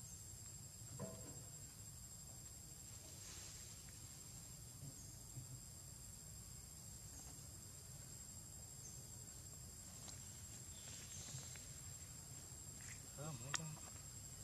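Leaves rustle as a monkey moves through low plants.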